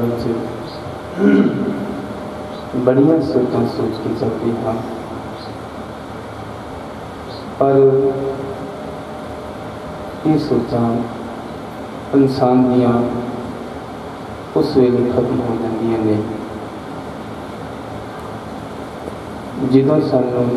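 A middle-aged man sings slow devotional phrases through a microphone, with pauses between them.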